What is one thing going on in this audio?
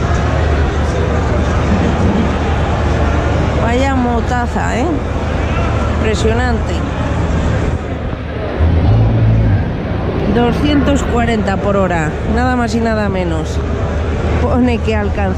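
A crowd of men and women chatters in a large echoing hall.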